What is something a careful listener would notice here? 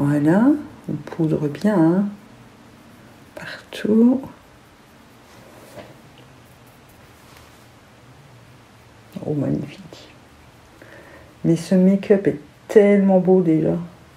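A woman talks calmly and close to a microphone, in short bursts.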